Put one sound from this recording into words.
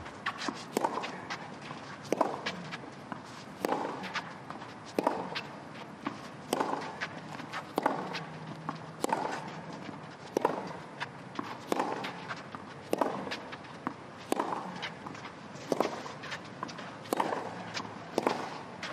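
A tennis ball is struck back and forth with sharp, regular pops of the racket.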